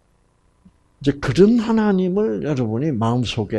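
An elderly man speaks with animation through a headset microphone.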